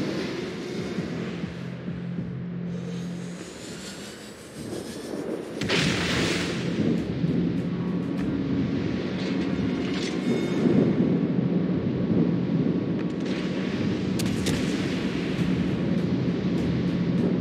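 A ship's engine rumbles steadily.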